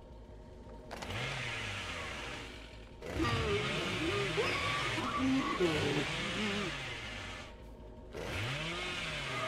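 A chainsaw engine revs and roars loudly.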